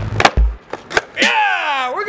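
A skateboard clacks onto concrete.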